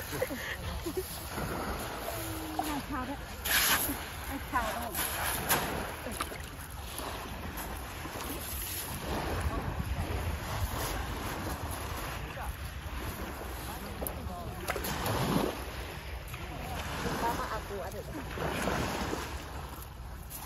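A net rustles as it is dragged and lifted.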